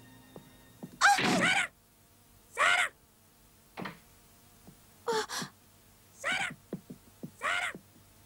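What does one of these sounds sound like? A young girl speaks anxiously in short, breathless phrases.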